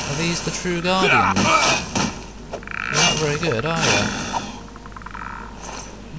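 Ghostly voices moan and wail in an echoing cave.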